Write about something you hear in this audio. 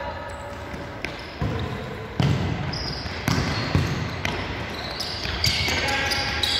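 A ball is kicked with sharp thuds that echo in a large hall.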